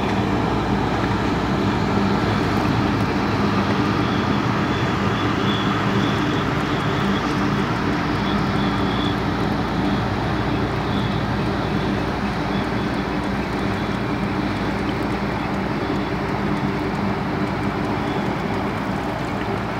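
Water laps against a small boat.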